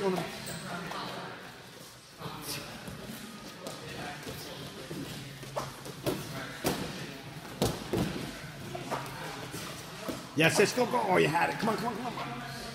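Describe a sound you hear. Feet thud and shuffle on a padded mat.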